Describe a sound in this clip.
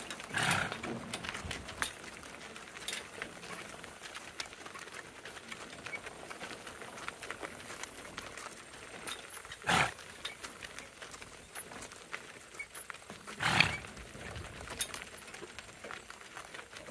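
Harness chains jingle and rattle.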